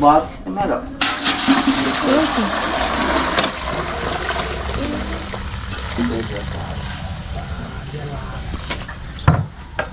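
Liquid pours steadily into a metal pail.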